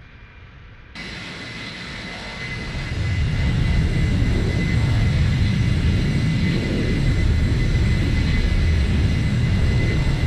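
Jet engines roar loudly and build in strength.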